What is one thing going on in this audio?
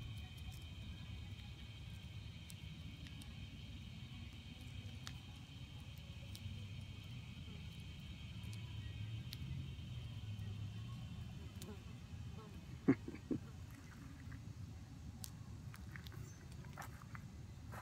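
A hornet chews on a cicada with faint crackling clicks.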